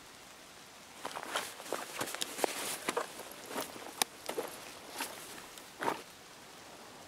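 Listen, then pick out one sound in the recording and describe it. Gear rustles and clicks as items are rummaged through.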